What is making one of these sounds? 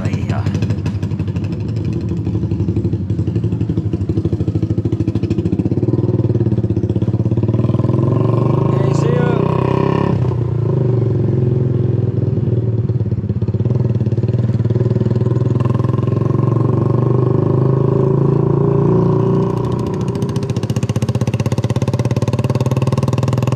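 A motorbike engine hums steadily close by as it rides.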